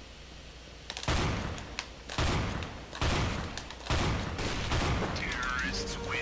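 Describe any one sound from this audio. Shotgun blasts boom in a video game.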